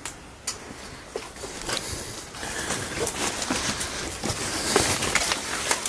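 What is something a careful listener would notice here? Dry leaves rustle and twigs crackle underfoot.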